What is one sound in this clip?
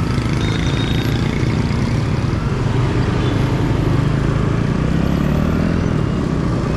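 A motorbike engine hums steadily up close.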